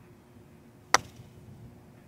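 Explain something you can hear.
A golf putter taps a ball with a sharp click.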